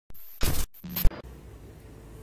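A burst of harsh electronic static crackles and cuts out.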